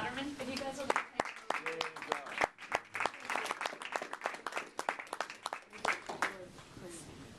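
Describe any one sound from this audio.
A group of people applaud, clapping their hands.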